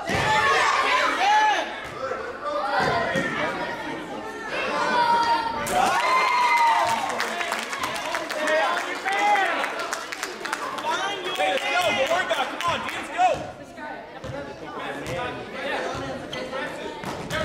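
Children shout and cheer loudly in an echoing gym.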